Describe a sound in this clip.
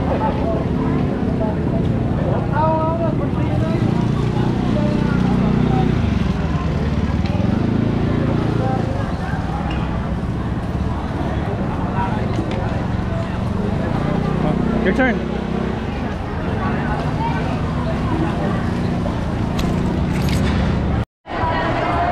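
Water gushes from a pump into a bucket.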